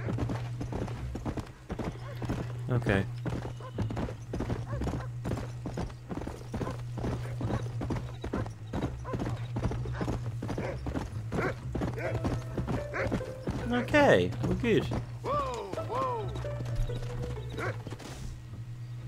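A horse gallops with quick, steady hoofbeats on a dirt track.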